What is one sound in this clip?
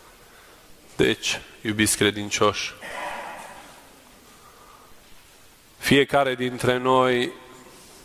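A man chants in short phrases through a microphone, echoing in a large hall.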